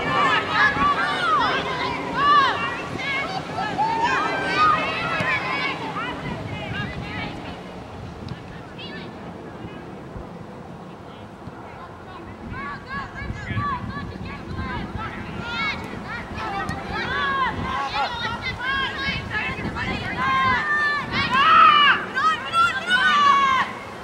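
A crowd of adults shouts and cheers outdoors at a distance.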